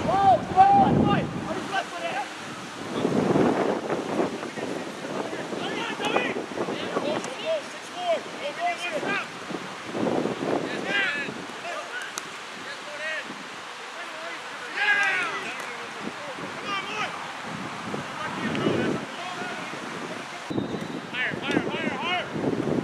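Young men shout and call out to one another outdoors in the open.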